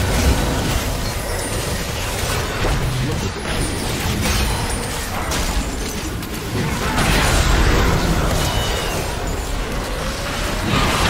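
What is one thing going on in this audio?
Magic blasts and weapon hits crackle and boom in a hectic battle.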